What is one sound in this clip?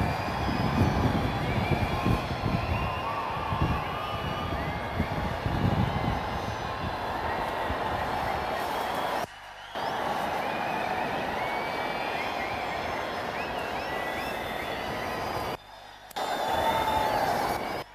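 A large crowd murmurs and cheers at a distance.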